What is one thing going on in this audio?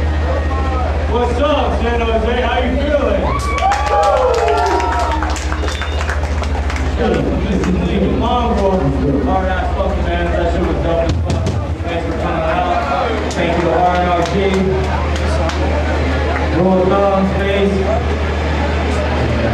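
A young man shouts into a microphone over a loudspeaker.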